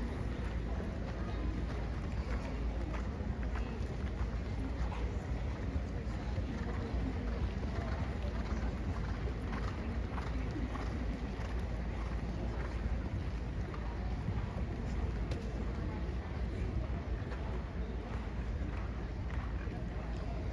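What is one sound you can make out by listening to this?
Horses' hooves thud softly on dirt footing.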